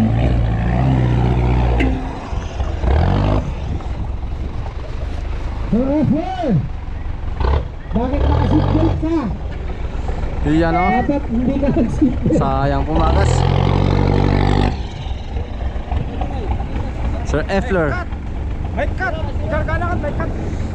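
An off-road truck engine revs hard and roars nearby.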